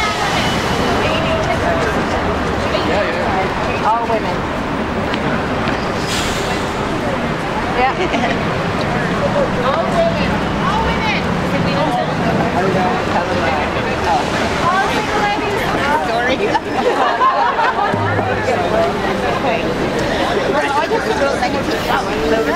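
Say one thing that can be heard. A crowd of women and men talk and call out nearby outdoors.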